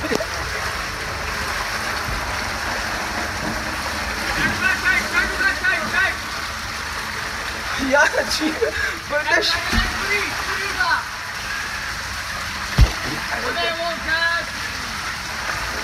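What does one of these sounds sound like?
Water rushes and splashes through a tube.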